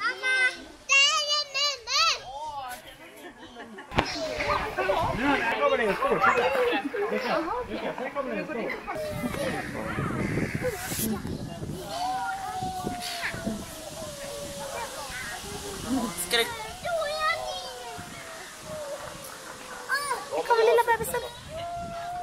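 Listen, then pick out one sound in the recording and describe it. Goats bleat nearby in quavering cries.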